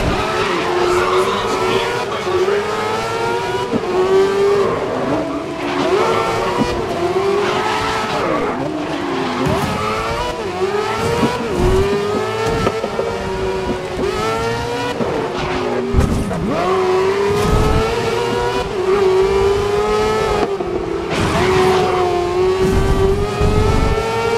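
A racing car engine screams at high revs, rising and dropping in pitch with each gear change.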